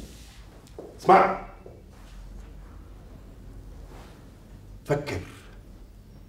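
A man speaks loudly in short, agitated bursts.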